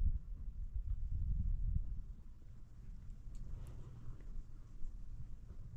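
Wind blows steadily across an open hillside.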